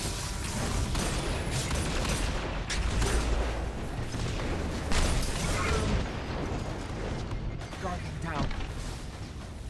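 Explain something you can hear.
Gunfire and energy blasts crackle and boom in rapid bursts.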